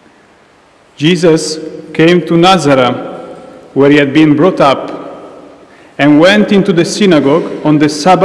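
A man sings loudly through a microphone, echoing in a large hall.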